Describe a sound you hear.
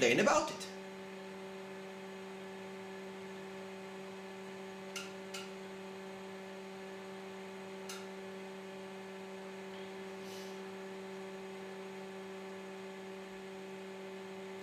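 An electronic device hums steadily.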